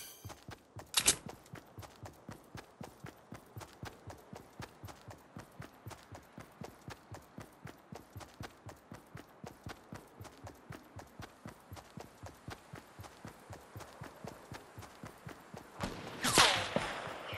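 Quick footsteps run steadily across grass.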